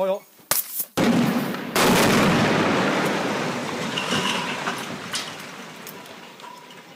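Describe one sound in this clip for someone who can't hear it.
A tall building collapses with a loud roaring rumble that slowly fades.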